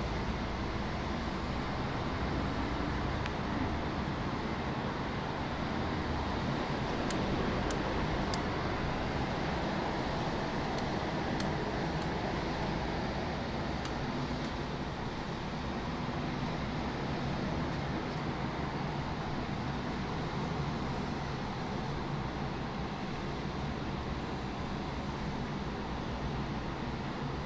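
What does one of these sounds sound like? Distant city traffic hums steadily far below.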